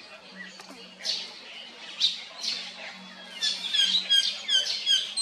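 A baby monkey squeals in short, high cries.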